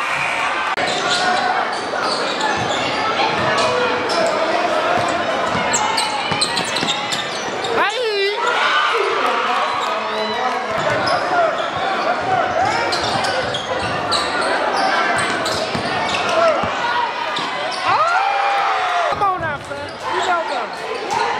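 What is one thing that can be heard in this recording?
A large crowd cheers and shouts in an echoing gym.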